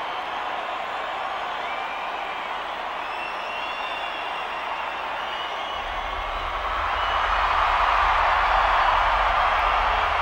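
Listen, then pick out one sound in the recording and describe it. A large outdoor crowd cheers and roars, growing louder.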